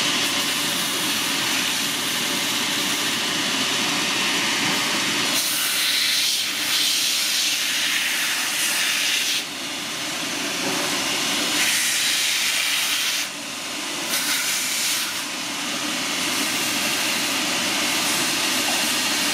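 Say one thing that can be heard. A spinning wheel scuffs and grinds against leather in harsh rasping bursts.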